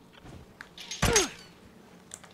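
A hunting rifle fires a single shot.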